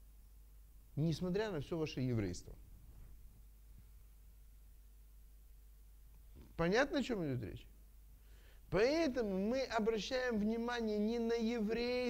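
A middle-aged man speaks with animation, in short bursts with pauses.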